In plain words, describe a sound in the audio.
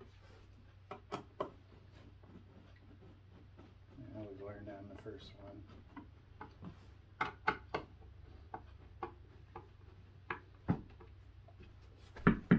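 Wooden boards knock and tap together.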